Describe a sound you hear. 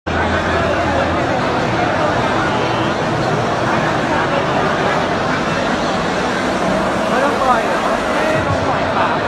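A large crowd roars and cheers loudly.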